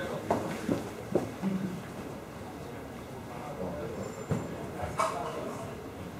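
Small objects click and tap in a man's hands.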